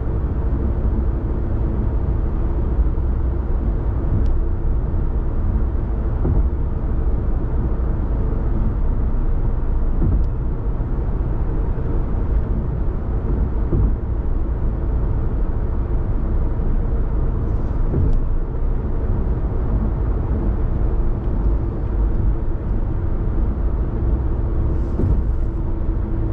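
A car's engine and tyres rumble steadily from inside the cabin.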